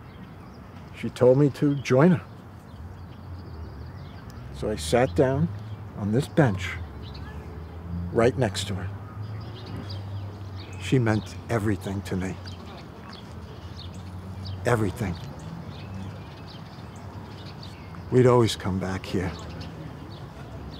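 An elderly man speaks calmly and slowly, close by, with long pauses.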